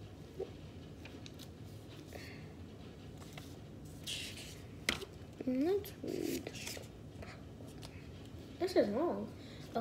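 Paper rustles and crinkles as it is unfolded.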